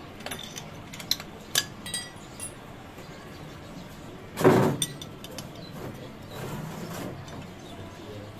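Metal tools clink and tap against a small engine.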